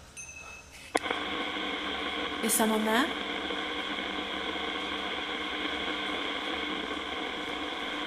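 A radio hisses with steady static.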